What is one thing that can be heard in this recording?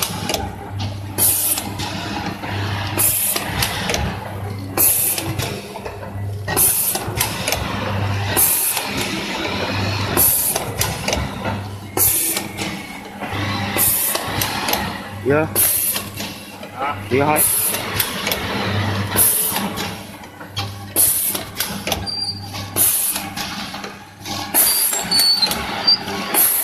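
A packing machine runs with a steady rhythmic hum and hisses of air every second or so.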